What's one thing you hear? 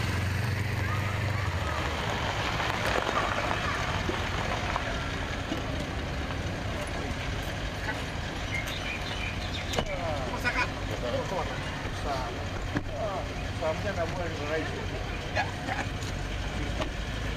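A car engine idles close by.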